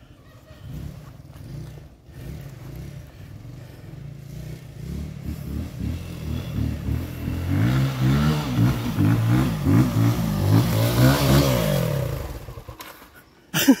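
A motorcycle engine approaches, growing louder as it climbs closer.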